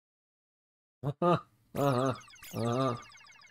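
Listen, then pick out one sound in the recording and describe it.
A man speaks briefly into a microphone, close up.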